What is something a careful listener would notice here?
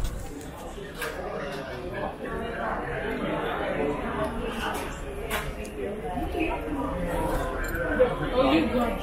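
A murmur of people talking fills a room nearby.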